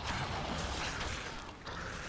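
Electric magic crackles and buzzes loudly.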